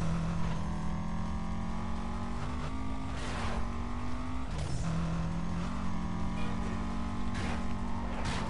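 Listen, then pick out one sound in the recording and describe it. A racing car engine roars steadily at high revs, its pitch shifting with gear changes.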